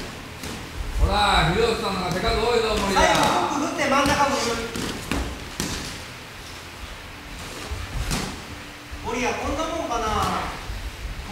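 A man shouts with animation nearby.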